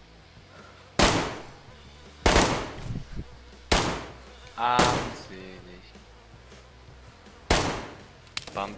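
A rifle fires loud, echoing shots several times.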